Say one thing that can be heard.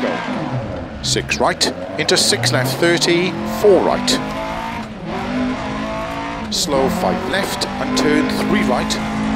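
Gravel rattles and knocks under a rally car's tyres.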